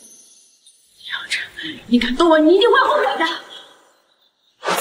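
A young woman speaks in a strained, frightened voice.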